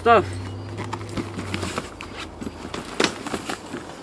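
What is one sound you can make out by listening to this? A suitcase zipper rasps.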